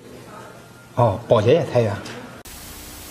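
A man speaks with surprise close by.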